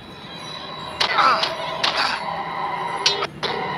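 Sharp blows land in a short scuffle.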